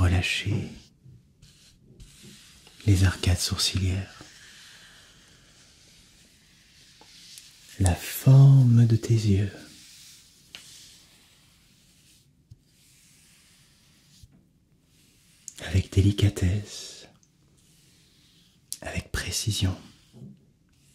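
A soft brush strokes across a notepad.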